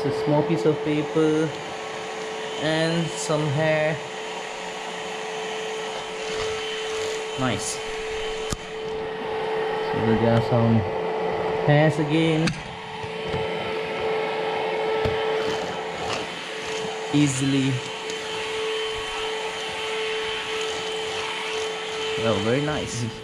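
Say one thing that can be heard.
A cordless vacuum cleaner hums steadily as it is pushed across a hard floor.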